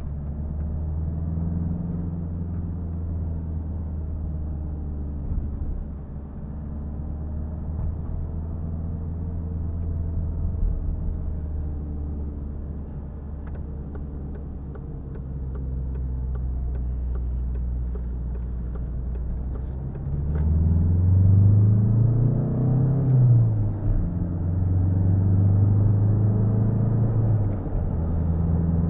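Tyres roll on the road with a low rumble.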